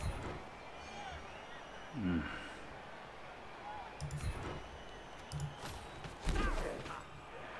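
Heavy thuds sound as players collide.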